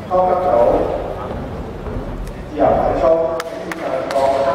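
A gymnast's feet thud onto a padded mat in a large echoing hall.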